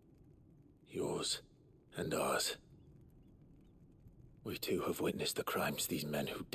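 A second man speaks in a low, steady voice.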